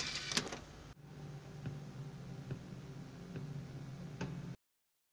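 A computer hums steadily.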